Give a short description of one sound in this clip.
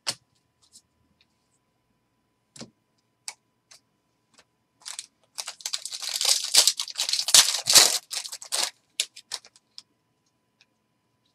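Cards click and shuffle against each other.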